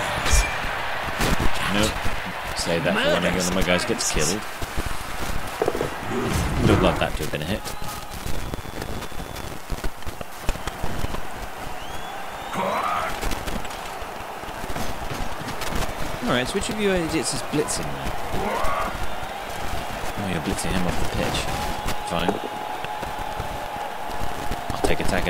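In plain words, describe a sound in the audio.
A stadium crowd murmurs and cheers steadily in the background.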